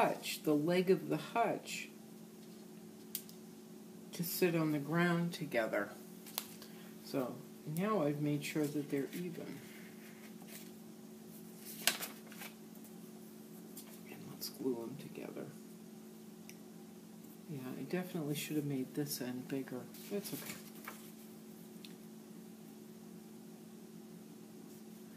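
Paper rustles and crinkles as it is handled and folded.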